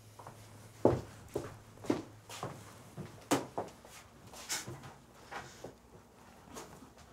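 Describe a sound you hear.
Footsteps move across a floor indoors.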